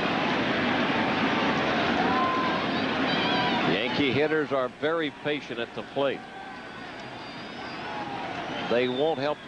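A large crowd cheers and murmurs in a big open stadium.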